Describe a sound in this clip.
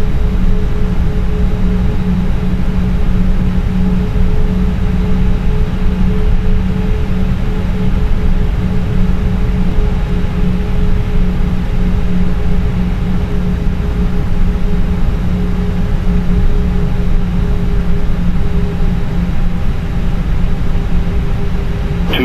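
The jet engines of an airliner hum steadily on approach, heard from inside the cockpit.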